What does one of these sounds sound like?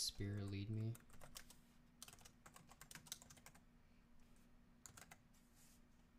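Keys clatter as someone types on a keyboard.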